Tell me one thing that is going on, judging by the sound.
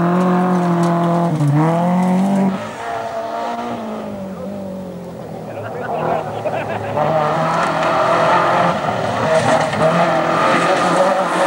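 A rally car engine roars at high revs, rising and falling as the car shifts gears.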